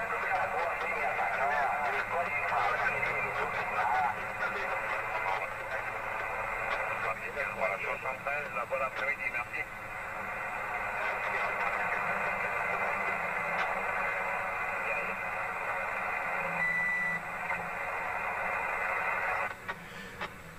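Shortwave radio static hisses and warbles through a receiver.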